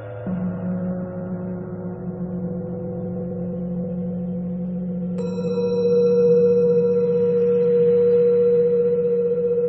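A steady electronic tone hums, then jumps to a brighter, higher sound partway through.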